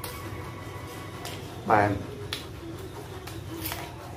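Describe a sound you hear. A man crunches into a raw vegetable with a loud bite.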